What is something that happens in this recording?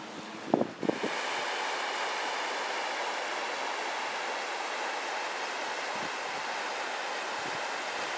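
A river rushes steadily over rocks.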